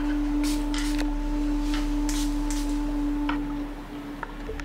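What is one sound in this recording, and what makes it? A metal bowl rings with a steady, humming tone.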